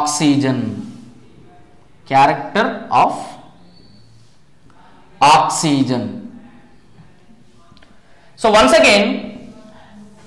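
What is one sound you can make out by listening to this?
A man speaks calmly and clearly, as if teaching, close to a microphone.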